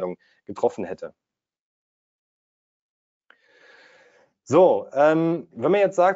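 A young man talks calmly and clearly into a close microphone, with short pauses.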